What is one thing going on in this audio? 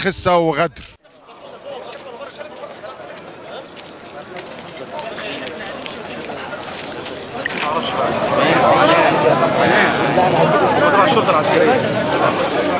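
A crowd of men murmurs and talks outdoors.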